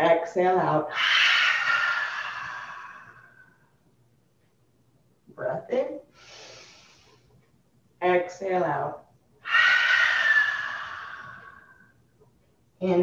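A woman breathes out long and loudly.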